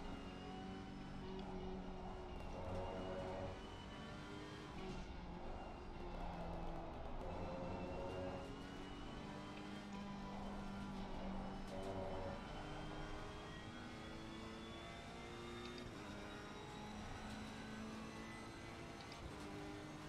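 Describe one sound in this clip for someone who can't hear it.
A racing car engine revs and changes gear.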